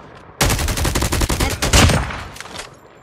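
A rapid burst of gunfire rattles loudly.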